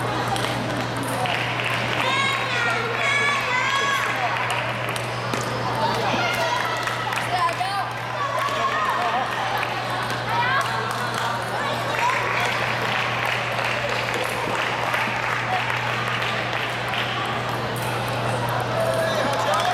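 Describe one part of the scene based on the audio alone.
A table tennis ball clicks back and forth on paddles and the table.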